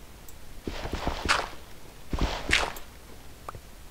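A stone block crunches and breaks.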